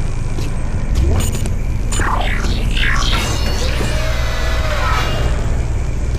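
A heavy metal door slides open with a mechanical whir.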